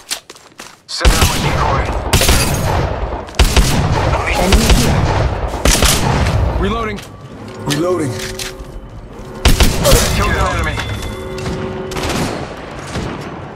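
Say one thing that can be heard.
Rapid gunfire bursts loudly and close by.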